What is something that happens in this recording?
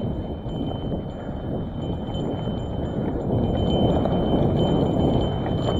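A bicycle rattles over bumps.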